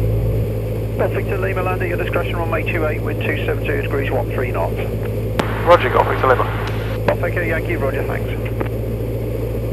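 A man speaks calmly over a headset intercom.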